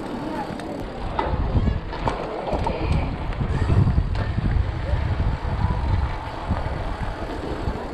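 Mountain bike tyres rumble over stone paving.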